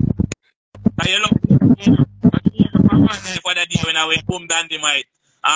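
A young man speaks loudly over an online call.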